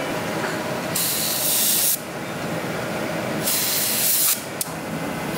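A spray gun hisses in short, loud bursts.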